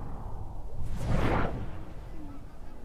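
A heavy landing thuds.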